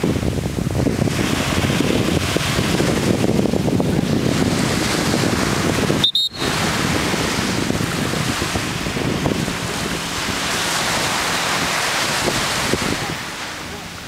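Wind blusters against the microphone outdoors.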